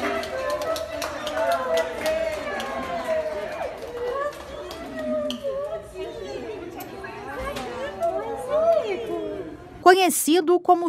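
A group of adults sings and cheers together.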